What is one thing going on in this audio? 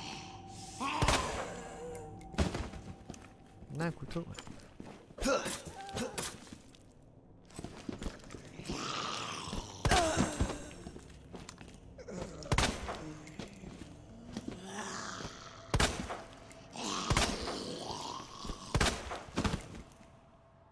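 Pistol shots ring out one at a time, loud and sharp.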